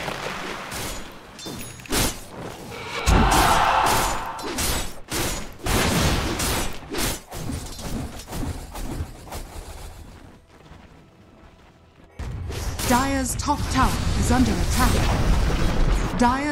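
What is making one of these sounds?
Spell effects and combat sounds burst and clash in a fantasy battle game.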